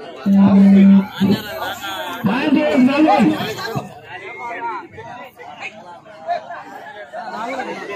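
A crowd of young men shouts and cheers outdoors.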